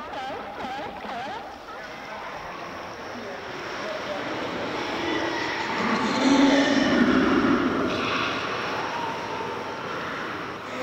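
Kayak paddles splash and dip into water.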